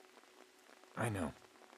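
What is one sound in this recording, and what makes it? A man speaks briefly in a low voice, close by.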